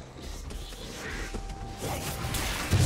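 Game sound effects of weapons and spells burst during a fight.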